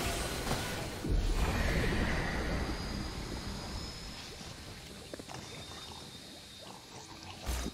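Magic spell effects crackle and whoosh during a video game fight.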